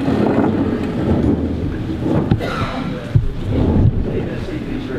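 Footsteps thud on a hard floor in an echoing room.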